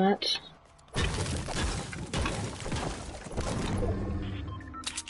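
A treasure chest bursts open with a bright, rushing shimmer.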